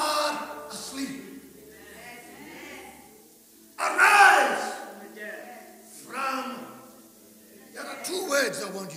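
A middle-aged man speaks with animation into a microphone, in an echoing hall.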